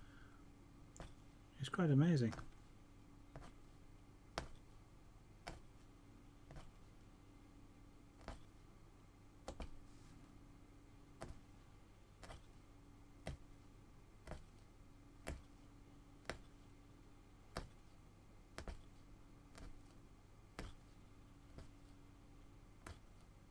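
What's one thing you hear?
A punch needle taps through taut cloth at a steady pace.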